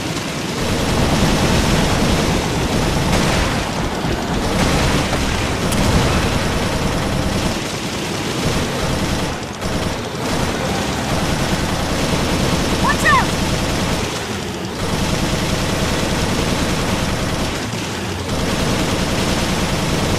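A mounted machine gun fires rapid bursts.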